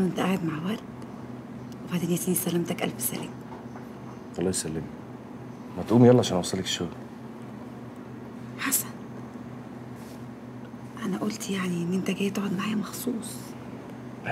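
A young woman speaks softly, close by.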